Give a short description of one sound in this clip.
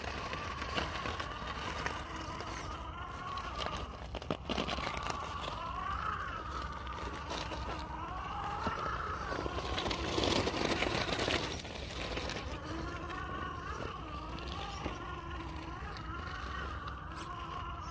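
Rubber tyres scrape and crunch over rock.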